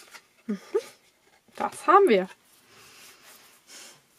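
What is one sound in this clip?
Paper rustles softly as it is folded and pressed.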